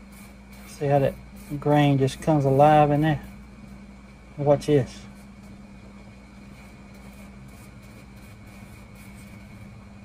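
A brush softly strokes across a knife handle.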